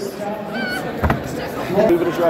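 An arm wrestling match ends with a thump on a table.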